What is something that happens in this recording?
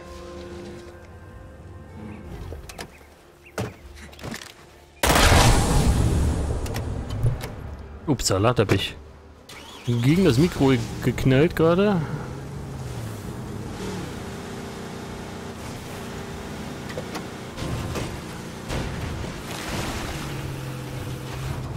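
An engine hums as a van drives over rough ground.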